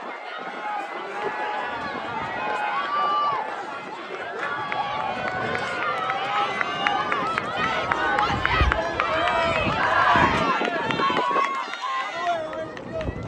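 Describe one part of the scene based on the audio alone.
Women and girls in the crowd yell encouragement loudly nearby.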